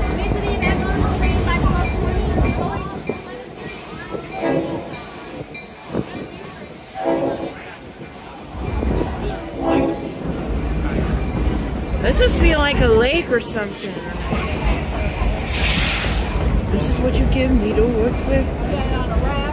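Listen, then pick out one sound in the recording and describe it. A train rumbles and clatters along the track outdoors.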